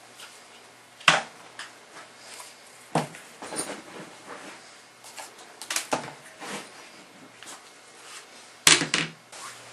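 Objects knock and clatter on a wooden table.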